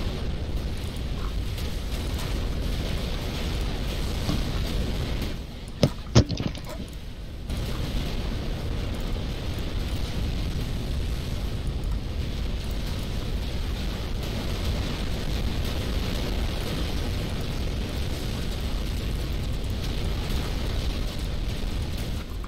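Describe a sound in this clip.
Weapons fire in rapid bursts.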